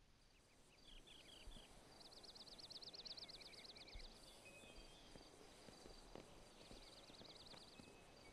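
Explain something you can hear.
Footsteps tap on hard paving.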